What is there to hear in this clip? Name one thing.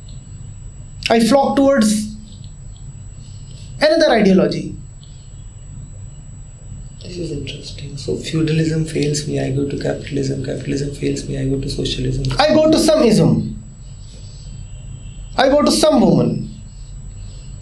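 A man speaks calmly and steadily nearby.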